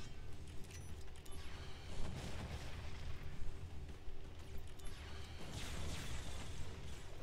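A fiery explosion booms and crackles.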